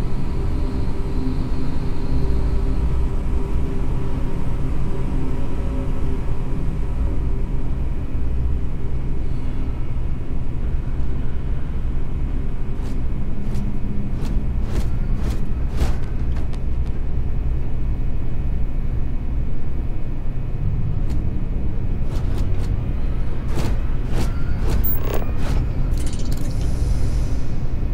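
Machinery hums low and steady.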